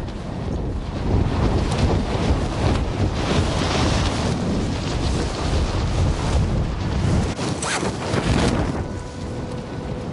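Wind rushes loudly past during a fast fall.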